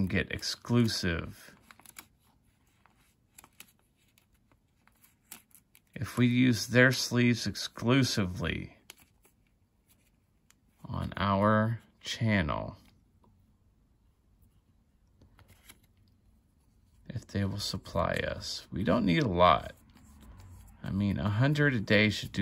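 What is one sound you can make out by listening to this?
A plastic card sleeve rustles and crinkles as a card slides into it.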